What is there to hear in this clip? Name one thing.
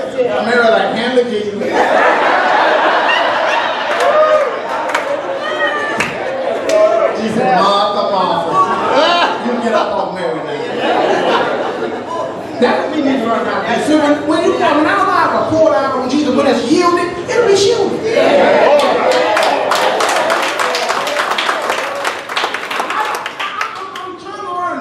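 A man preaches loudly and with animation through a microphone and loudspeakers.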